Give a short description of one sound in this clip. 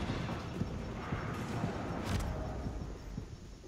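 An explosion roars and rumbles, then fades.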